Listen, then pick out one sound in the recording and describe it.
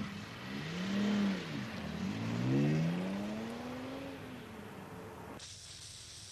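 A man shouts loudly from a window.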